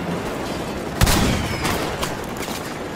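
A large explosion booms and rumbles.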